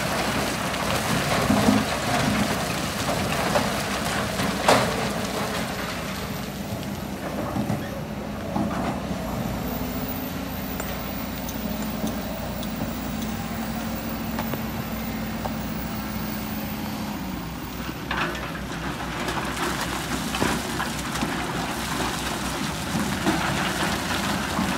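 Rocks and soil tumble from an excavator bucket into a truck bed with a rough clatter.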